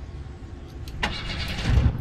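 A car engine starts up with a rumble.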